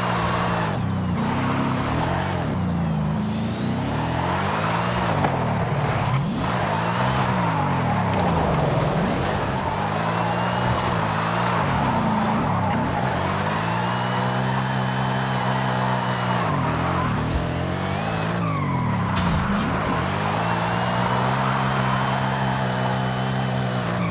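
A powerful car engine revs up and down.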